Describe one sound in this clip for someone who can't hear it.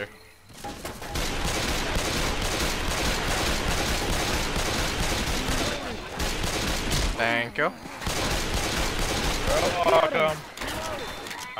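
Pistols fire in rapid bursts of loud shots.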